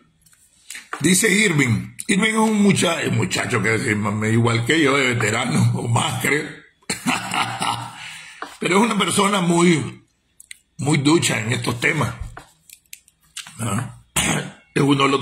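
A middle-aged man talks with animation, close to a phone microphone.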